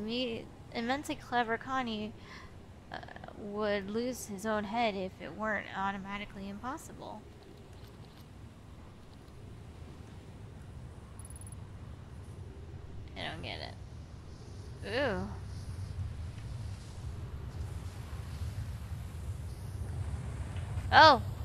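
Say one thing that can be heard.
A young woman speaks animatedly into a close microphone.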